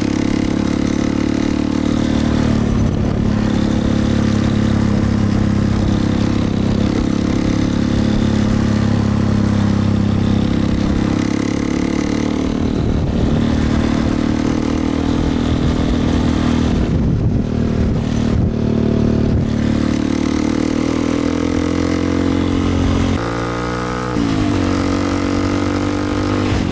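A motorcycle engine hums steadily up close, with its pitch rising and falling as the rider changes speed.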